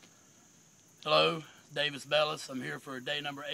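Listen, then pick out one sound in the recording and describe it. A man speaks close up, calmly and clearly.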